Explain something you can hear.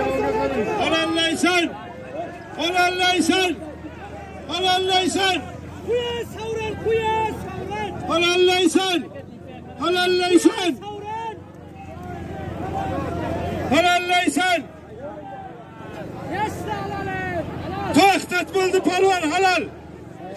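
A man nearby shouts loudly in repeated bursts.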